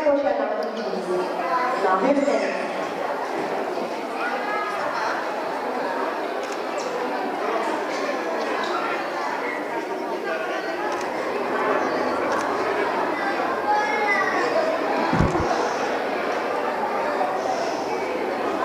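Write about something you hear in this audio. A young woman sings into a microphone through loudspeakers, in a reverberant hall.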